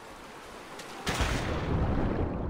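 A body splashes heavily into water.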